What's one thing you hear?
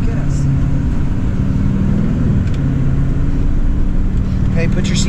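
A vehicle engine hums steadily from inside the cabin.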